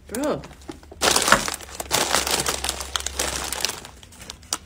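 Plastic snack bags crinkle and rustle loudly.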